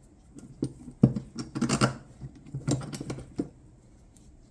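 A metal bracket knocks against a hard floor.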